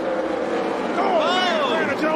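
A race car engine roars past close by, its pitch dropping as it goes.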